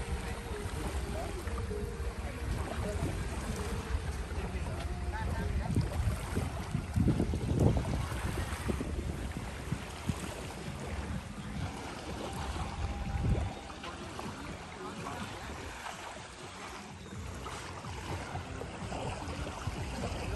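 Small waves lap gently on a sandy shore.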